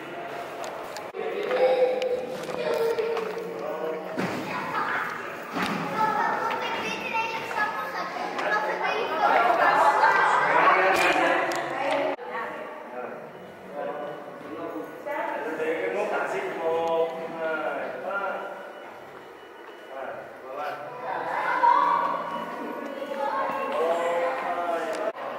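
Men and women chatter in a large echoing hall.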